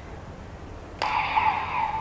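A plastic card clicks into a toy belt.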